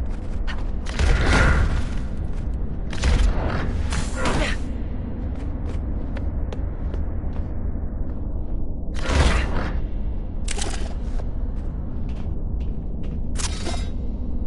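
Electronic game effects whoosh in short bursts.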